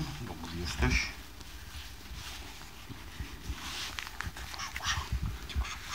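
A hand strokes a dog's fur with soft rustling.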